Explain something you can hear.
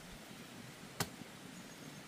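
A hoe strikes the soil with a sharp thud.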